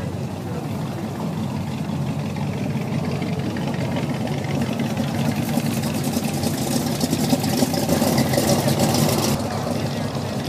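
Old car engines rumble as cars drive past one after another.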